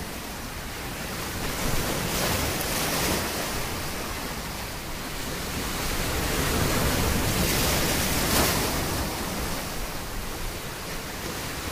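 Ocean waves break and crash against rocks, with surging rushes of foam.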